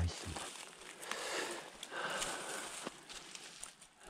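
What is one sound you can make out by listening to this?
Leaves and twigs rustle close by as a plant is handled.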